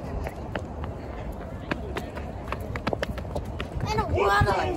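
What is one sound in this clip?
Footsteps tap on pavement outdoors.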